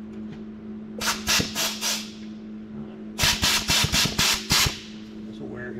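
An air tool rattles in loud bursts against metal.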